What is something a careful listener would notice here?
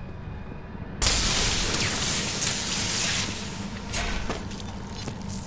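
Electric bolts crackle and zap loudly.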